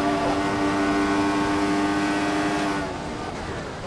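A Formula One car's engine screams at high revs.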